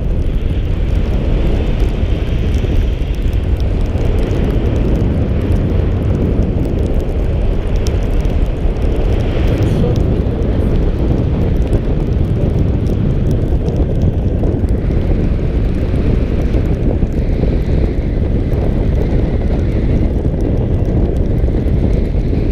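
Strong wind roars and buffets loudly throughout.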